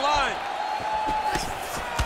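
A punch lands with a dull thud.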